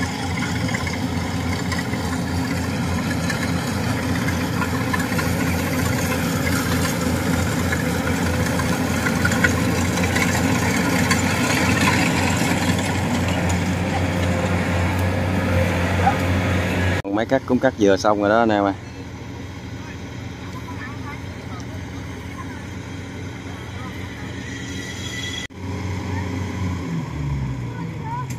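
A harvesting machine's engine drones steadily close by.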